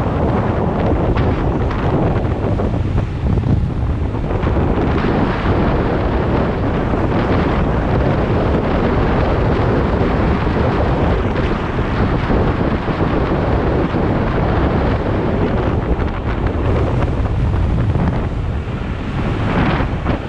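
Wind buffets a microphone on a fast-moving electric scooter.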